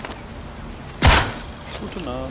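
An arrow is loosed with a sharp twang.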